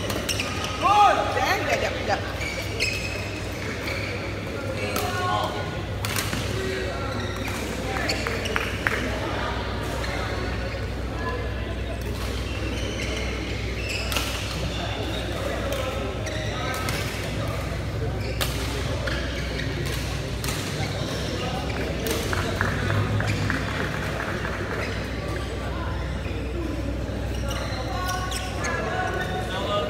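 Shuttlecocks are struck with sharp pops of rackets, echoing in a large hall.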